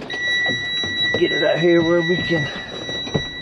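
A truck's starter motor cranks the engine.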